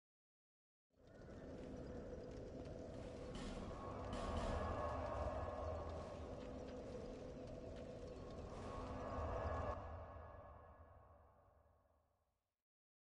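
A fire crackles and roars steadily.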